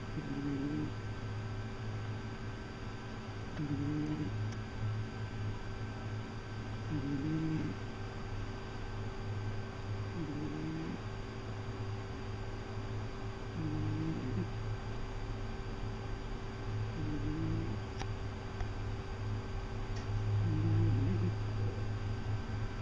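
A sleeping cat snores in short bursts every few seconds.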